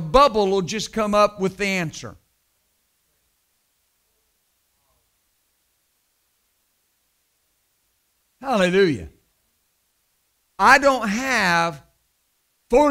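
A man speaks with animation into a microphone, pausing for long silences.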